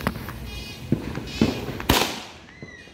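A firework fizzes and crackles as it is lit.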